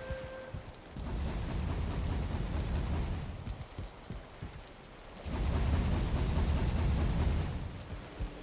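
A furnace roars with a low rumble.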